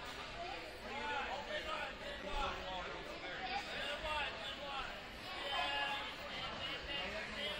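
Men and women chatter at a distance in a large echoing hall.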